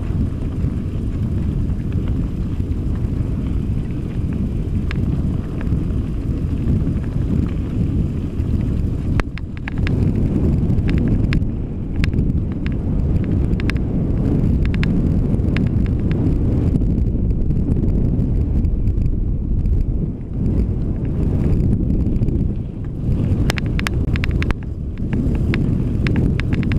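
Bicycle tyres crunch and rattle over a bumpy dirt track.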